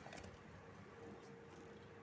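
A cow slurps water from a bucket.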